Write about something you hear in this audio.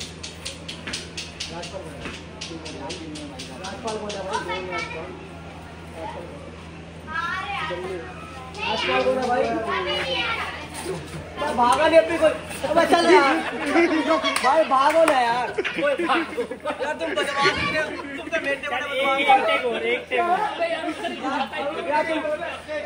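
Several young men talk loudly and excitedly nearby.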